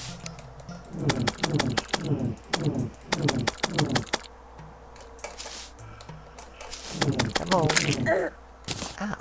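Quick game sound effects of a weapon striking a monster repeat in bursts.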